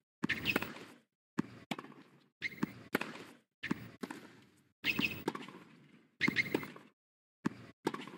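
A tennis ball is struck hard by rackets, back and forth in a rally.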